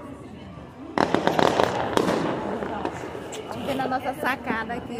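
Fireworks bang and crackle in the distance.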